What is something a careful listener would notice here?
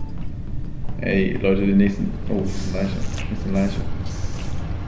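A young man talks animatedly into a close microphone.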